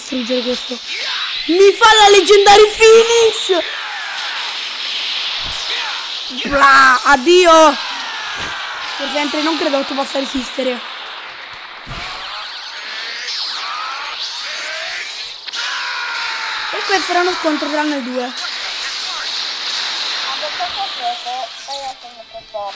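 Energy blasts roar and crackle.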